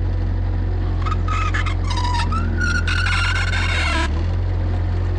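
Hydraulics whine as a loader lifts a load.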